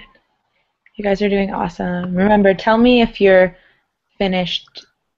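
A woman speaks calmly over an online call.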